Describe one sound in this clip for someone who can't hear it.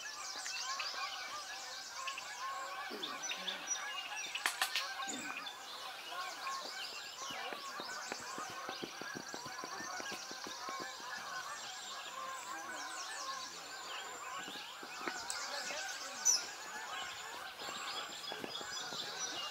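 A large flock of geese honks high overhead, outdoors.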